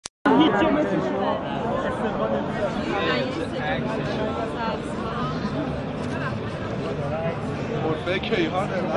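Many people talk loudly all around at close range.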